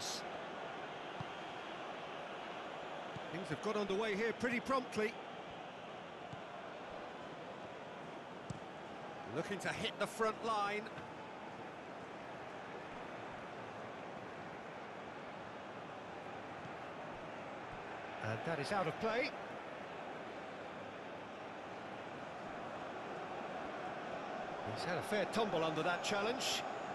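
A stadium crowd murmurs and hums steadily.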